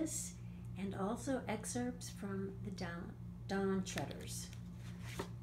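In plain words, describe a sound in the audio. An elderly woman reads aloud close by, in a lively storytelling voice.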